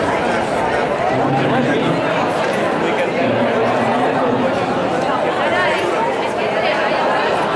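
Several men chatter and call out in a large echoing hall.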